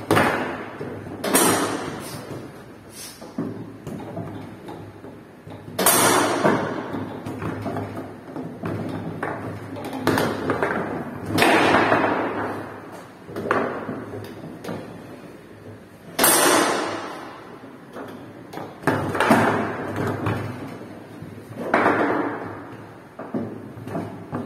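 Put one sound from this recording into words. A ball knocks and clatters against plastic players and table walls.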